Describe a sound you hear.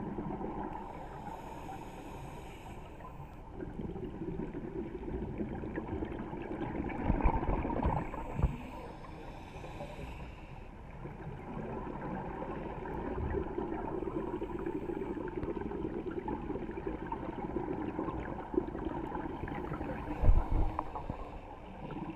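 A diver breathes slowly through a regulator.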